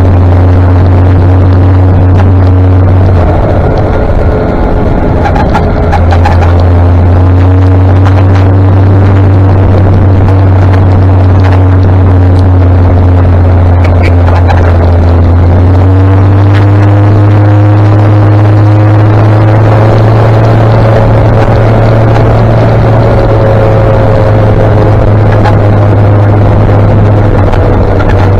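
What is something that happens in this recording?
A motorcycle engine hums steadily, rising slightly in pitch now and then.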